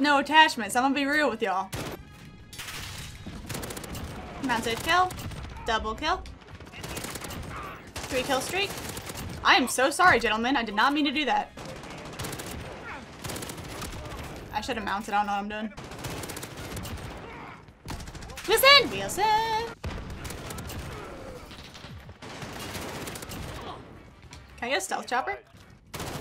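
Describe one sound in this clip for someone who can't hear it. A young woman talks with animation into a headset microphone, close by.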